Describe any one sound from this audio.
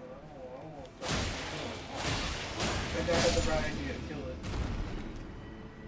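Blades swing and slash in a quick series of heavy blows.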